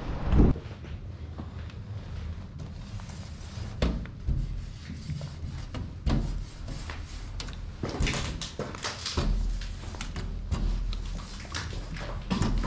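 A marker squeaks across window glass.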